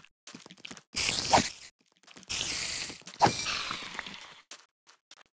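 A sword strikes a spider.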